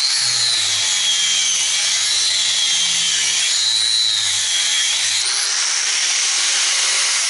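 An angle grinder whines loudly, its pitch dipping and rising as it grinds metal.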